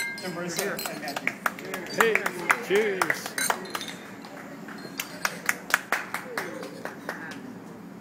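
Glasses clink together in a cheerful toast.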